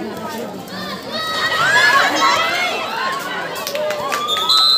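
Girls and women in a crowd cheer and scream loudly.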